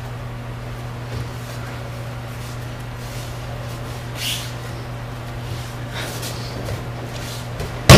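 Bare feet shuffle and slap on a mat.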